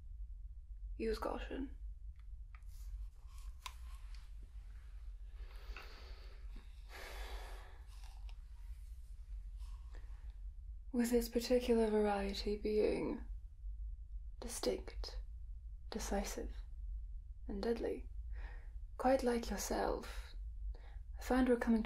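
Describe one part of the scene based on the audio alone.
A young woman speaks calmly and clearly into a headset microphone, with pauses.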